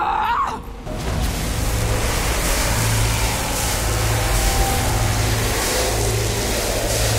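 Lightning crackles and roars loudly.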